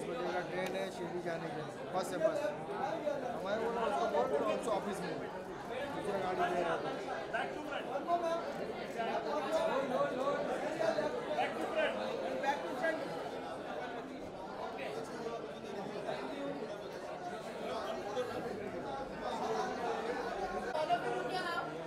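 A crowd of men and women chatters loudly all around.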